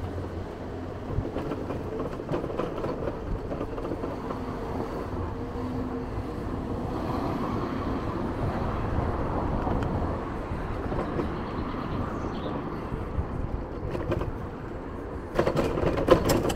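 Footsteps tap steadily on a pavement outdoors.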